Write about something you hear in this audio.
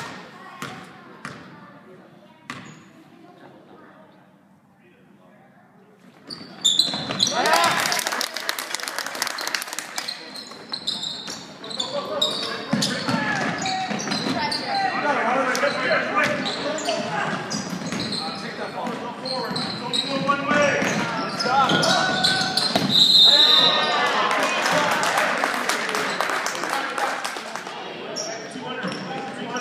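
A basketball bounces on a wooden gym floor.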